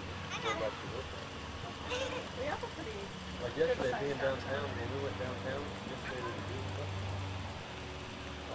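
A woman talks cheerfully nearby.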